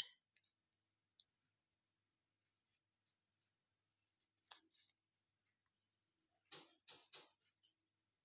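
A needle pulls yarn softly through knitted fabric.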